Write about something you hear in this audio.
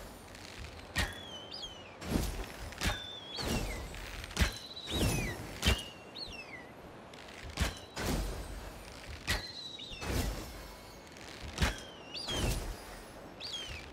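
A hawk cries out with short, falling screeches, again and again.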